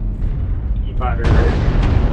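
A laser weapon fires with a sharp zap.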